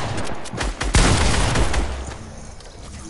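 A loud blast bursts out.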